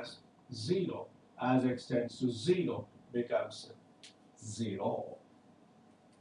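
A middle-aged man explains calmly, close to a microphone.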